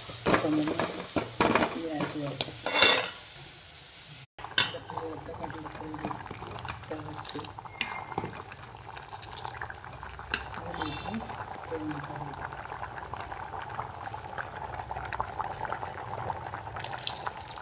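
A metal ladle clinks and scrapes against a pot.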